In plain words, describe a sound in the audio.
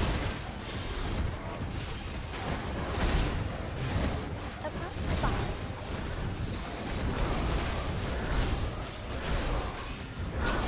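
Spell effects whoosh and crackle in a busy fight.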